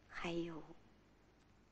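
A middle-aged woman calls out briefly nearby.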